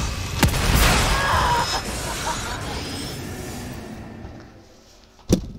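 A monster growls loudly up close.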